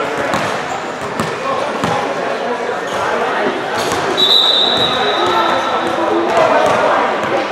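A crowd of young men chatter and call out nearby.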